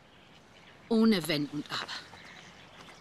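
An elderly woman speaks close by with feeling.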